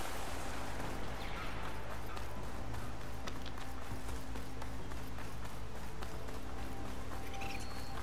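Footsteps run quickly over a dirt path.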